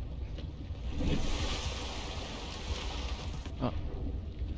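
Water splashes and rushes as a swimmer breaks the surface.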